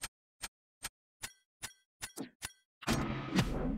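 Quick electronic ticks count down rapidly.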